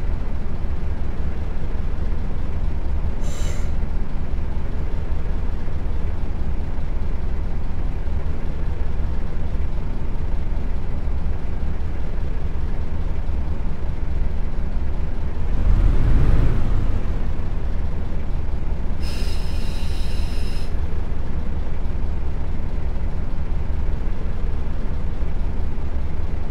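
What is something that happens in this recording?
A bus engine hums steadily with a low rumble.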